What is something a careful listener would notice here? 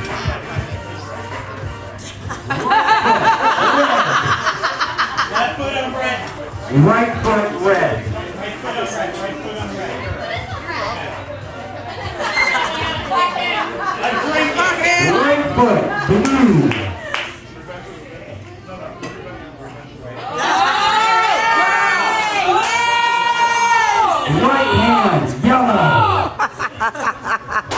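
A crowd of young adults talks and shouts close by.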